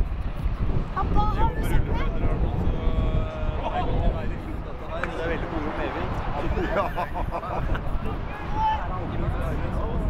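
Young players shout to each other across an open field.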